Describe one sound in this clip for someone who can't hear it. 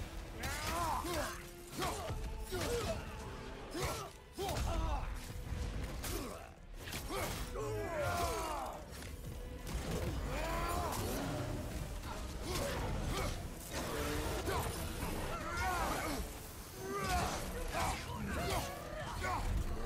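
Heavy weapon blows thud and clash again and again.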